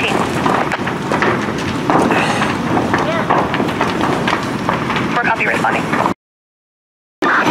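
A large fire roars and crackles loudly.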